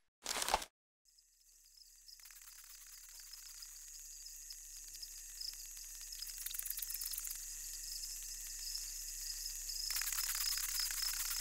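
Swarming insects buzz steadily and grow louder.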